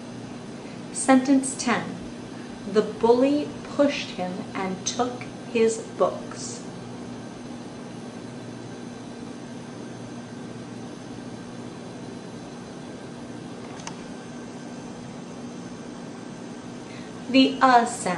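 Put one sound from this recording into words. A young woman speaks calmly and closely.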